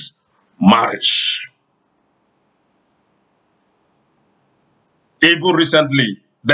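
A man speaks animatedly and close to a microphone, in short bursts with pauses.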